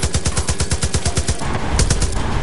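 A machine gun fires a rapid burst.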